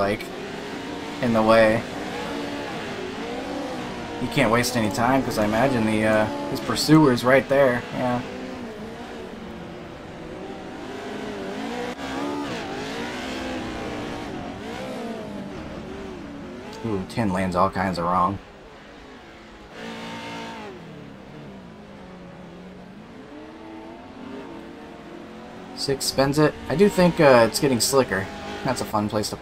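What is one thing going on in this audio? Race car engines roar and rev up and down.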